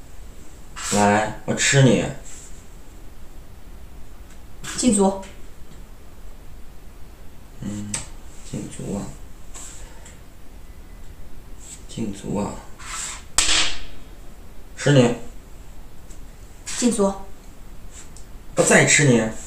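Wooden game pieces click and slide on a wooden board.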